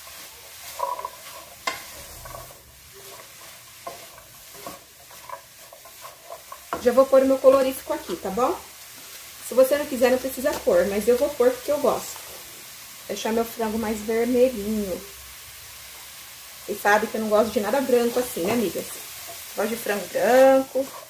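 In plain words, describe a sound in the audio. A wooden spoon stirs and scrapes food in a pot.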